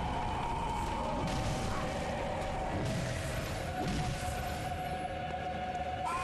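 A large beast snarls and growls.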